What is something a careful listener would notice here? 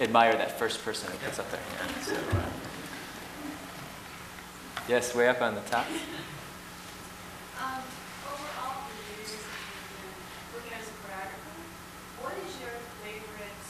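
A middle-aged woman speaks with animation through a microphone in a large room.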